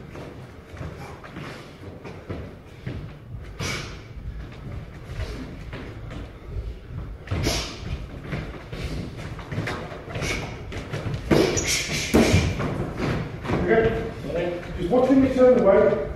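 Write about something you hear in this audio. Sneakers squeak and shuffle on a wooden floor.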